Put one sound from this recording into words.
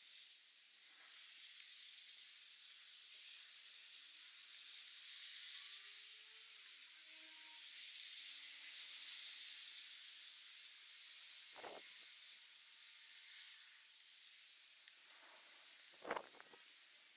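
Wind rustles through leafy trees outdoors.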